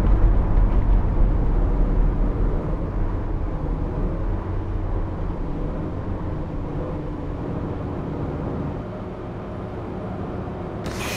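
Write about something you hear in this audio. A bus engine quietens as the bus slows down.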